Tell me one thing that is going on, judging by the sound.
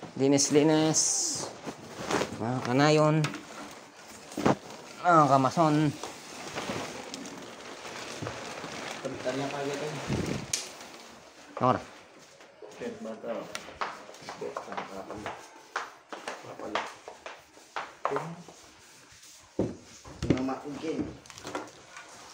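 A man speaks loudly and with animation close by.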